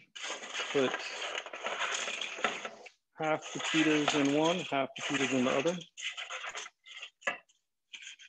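Crunchy croutons slide and clatter from a metal tray into bowls.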